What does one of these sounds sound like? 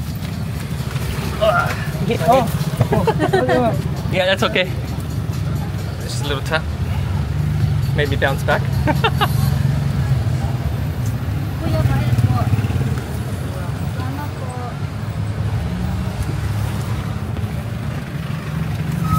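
A motor tricycle engine rumbles steadily while riding along a street.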